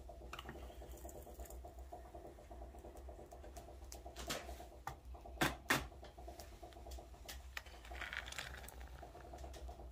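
Molten metal pours and sizzles into a tin can.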